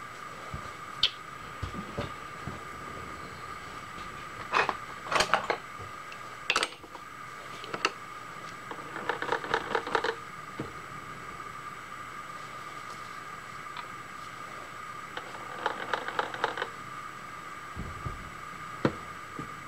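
Metal parts clink and clank sharply now and then.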